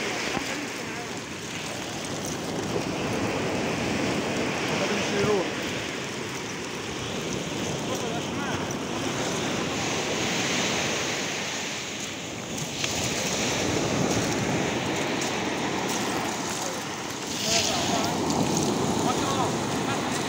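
Wind blows hard outdoors, rumbling steadily.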